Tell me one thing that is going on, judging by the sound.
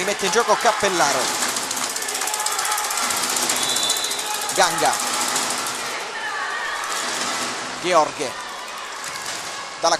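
A large crowd cheers and chants in an echoing hall.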